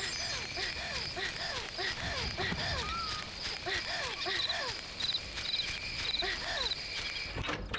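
Footsteps pad softly on grass.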